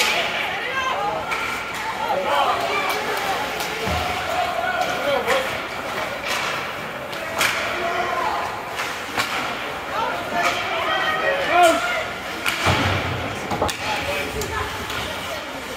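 Spectators call out and cheer in a large echoing rink.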